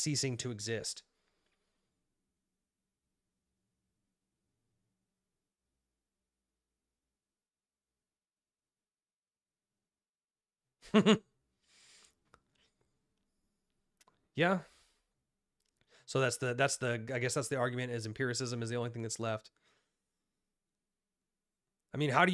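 A young man speaks calmly and close to a microphone, pausing between phrases.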